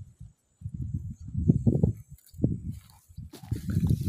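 A small child scoops soil by hand.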